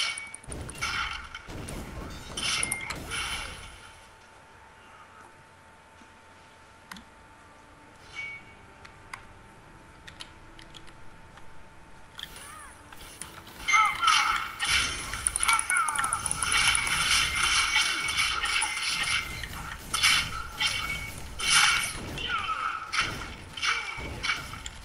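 Blades slash and clash in a fast fight.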